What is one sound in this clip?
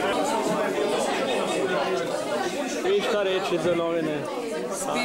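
Several men talk with animation close by.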